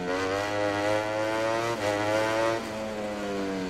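A motorcycle engine revs high as the bike accelerates down a straight.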